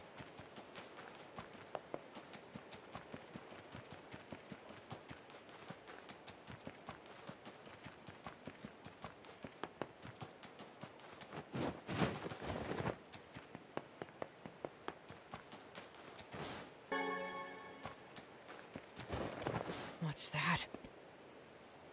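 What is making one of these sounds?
Footsteps run quickly over grass and stone.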